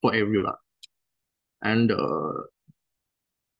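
A young man speaks calmly through an online call microphone.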